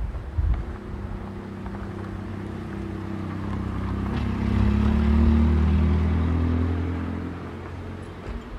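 A car engine hums as the car drives past close by.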